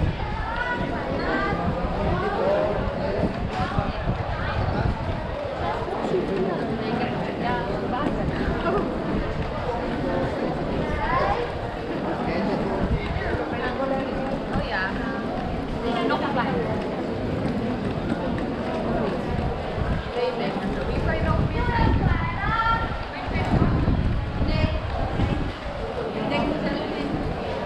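Footsteps of many people scuff on a paved street.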